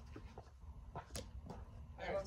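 A bat cracks against a ball in the distance.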